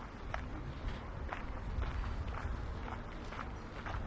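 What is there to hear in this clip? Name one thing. Footsteps tap on a paved path nearby.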